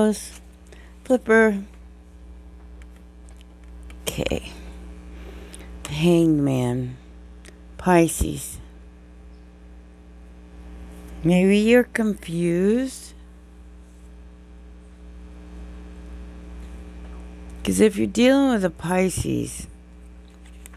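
A woman speaks calmly and close by, in short bursts with pauses.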